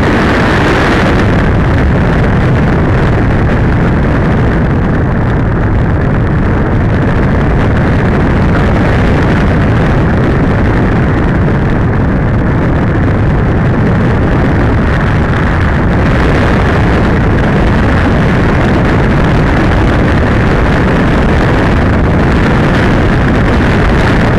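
Wind roars loudly and steadily past a gliding model plane.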